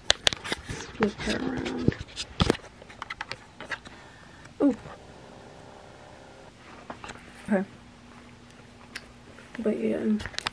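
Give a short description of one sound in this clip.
A young woman hums and speaks briefly, very close.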